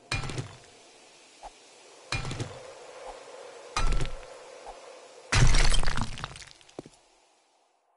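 A pickaxe strikes rock with heavy thuds.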